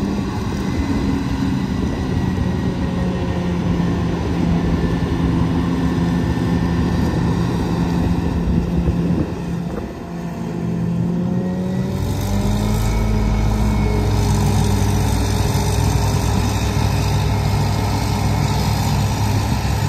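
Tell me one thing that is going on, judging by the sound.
A forage harvester engine roars steadily nearby.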